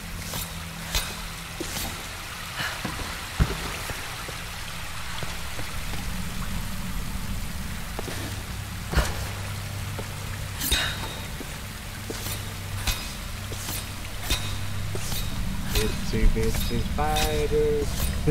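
Footsteps crunch over loose gravel and rock.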